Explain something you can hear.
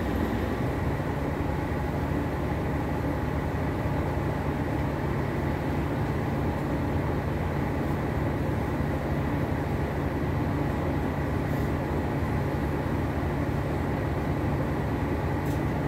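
A bus engine rumbles steadily, heard from inside the bus.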